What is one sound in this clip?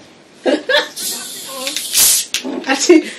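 Fizzy drink hisses as a bottle cap is twisted open.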